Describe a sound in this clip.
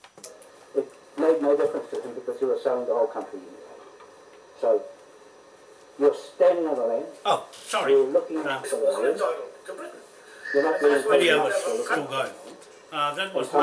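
A middle-aged man speaks close to the microphone with animation.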